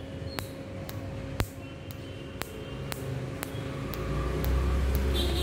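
A tattoo removal laser snaps with sharp, regular clicks.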